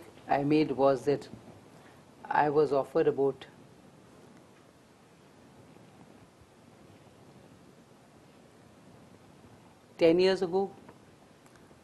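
A woman speaks calmly through a microphone, in short bursts with long pauses.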